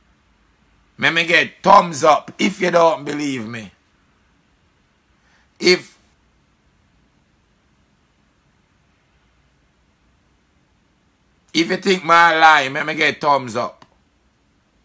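A man speaks calmly and close to a phone microphone, with pauses.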